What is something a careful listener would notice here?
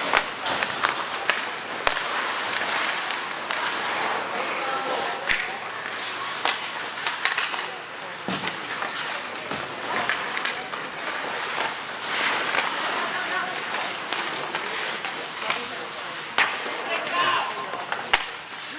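Hockey sticks clack sharply against a puck and the ice.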